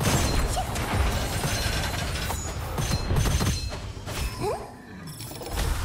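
Explosions boom and crackle in a video game.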